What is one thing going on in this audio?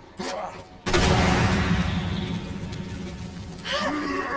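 An explosion bursts and flames roar.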